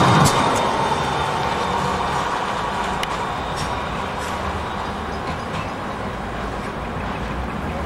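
A tram hums as it pulls away into the distance.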